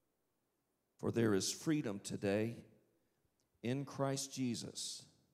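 A man speaks loudly through a microphone in a large room.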